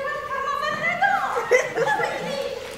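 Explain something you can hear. A woman exclaims loudly with a rising cry.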